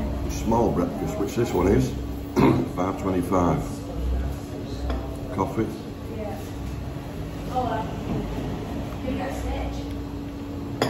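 An older man talks calmly and close by.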